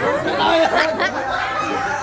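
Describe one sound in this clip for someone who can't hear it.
A boy laughs loudly.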